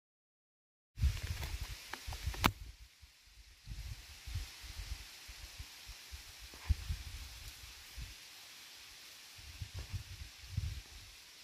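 Wind gusts outdoors, rustling leaves on branches.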